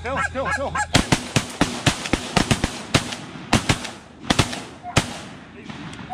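A shotgun fires several loud blasts close by.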